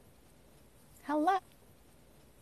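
A young woman speaks briefly over an online call.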